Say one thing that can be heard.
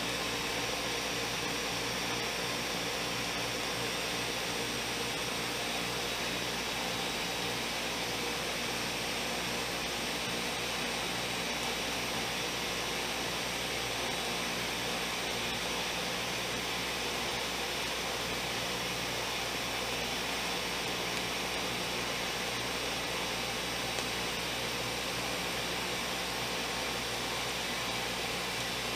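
A blender motor whirs loudly and steadily, churning liquid close by.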